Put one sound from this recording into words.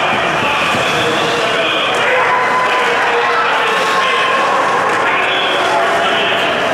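Skates scrape across the ice.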